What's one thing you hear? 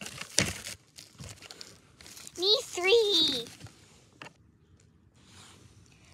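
Plastic toy figures knock and rustle against twigs in crunchy snow.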